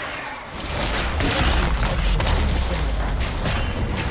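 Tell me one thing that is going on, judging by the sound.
A tower crumbles with a deep rumbling crash.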